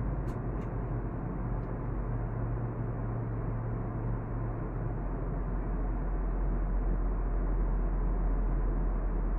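A jet engine roars with a steady low hum inside an airliner cabin.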